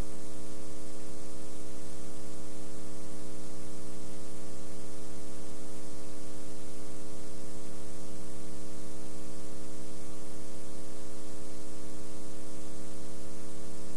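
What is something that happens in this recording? Television static hisses steadily.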